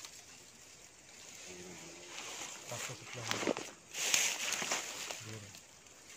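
Boots rustle through grass and leaves.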